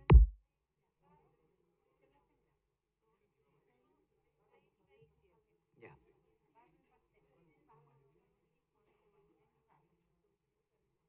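A woman speaks calmly through a microphone, faint and distant in a large room.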